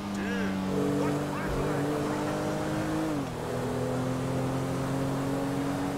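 A car engine hums steadily, its pitch dropping a little as the car eases off.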